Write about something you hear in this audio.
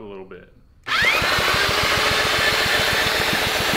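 A power drill whirs steadily.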